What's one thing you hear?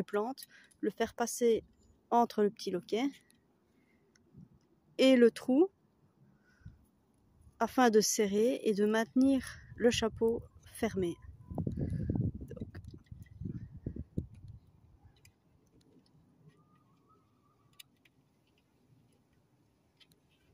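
Fingers fiddle with a wire clip on a metal bird feeder.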